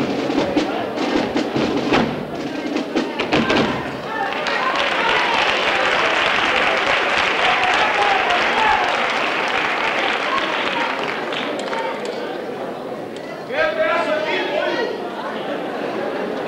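Children sing together in a large echoing hall.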